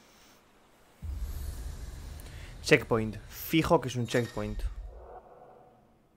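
A deep whoosh and chime ring out as a glowing marker lights up.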